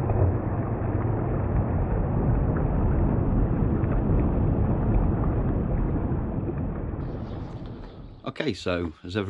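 A shallow stream rushes loudly over stones.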